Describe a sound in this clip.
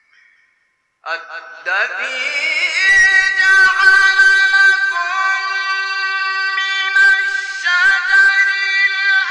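A man chants slowly in a long melodic voice through a microphone, echoing in a large hall.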